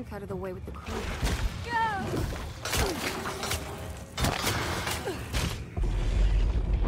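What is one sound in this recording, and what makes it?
Bodies scuffle and thump in a violent struggle.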